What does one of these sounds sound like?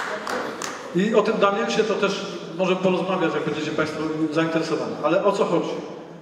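A middle-aged man speaks calmly through a microphone and loudspeakers.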